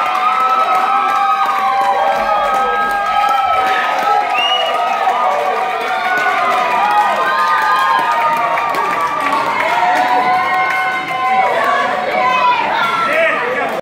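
A fiddle plays a lively tune, loud and amplified in a large room.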